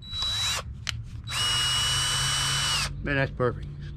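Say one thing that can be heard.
A cordless drill whirs in short bursts.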